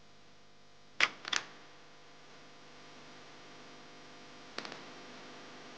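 High-heeled shoes click on a hard floor.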